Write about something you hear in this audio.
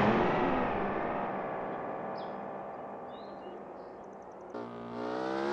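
A truck engine rumbles away into the distance.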